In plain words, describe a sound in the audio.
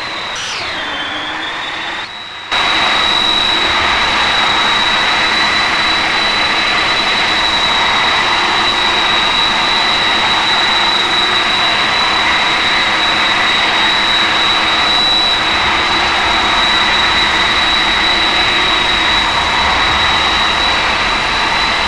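A jet engine whines and roars steadily.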